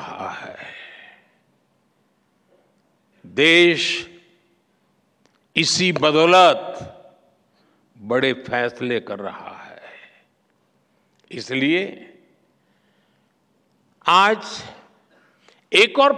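An elderly man speaks with emphasis into a microphone, in phrases separated by pauses.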